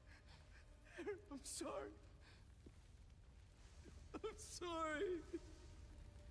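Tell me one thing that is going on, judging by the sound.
A young woman speaks tearfully, crying.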